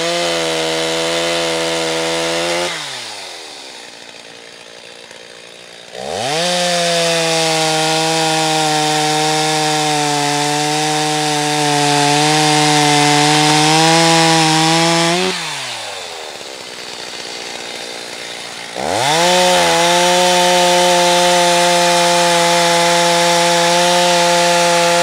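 A chainsaw engine revs loudly, dies down to idle and revs up again.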